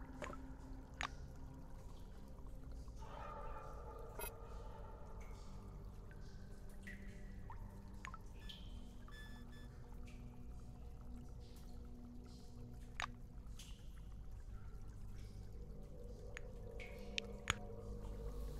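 Interface clicks sound.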